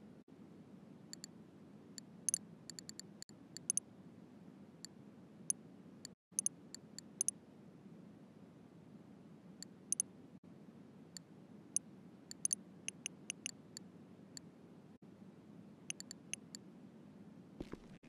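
Soft clicks tick in quick bursts.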